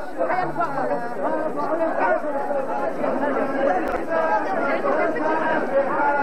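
A crowd of men sings loudly together.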